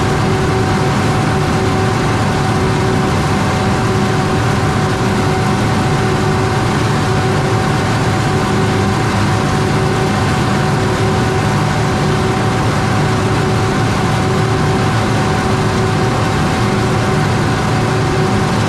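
A large harvesting machine's engine drones steadily.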